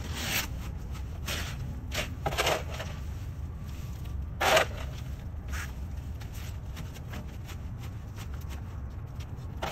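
Leaves rustle as they are dropped into a plastic bin.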